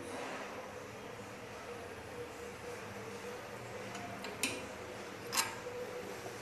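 Metal parts of a machine click and clack as a hand adjusts them.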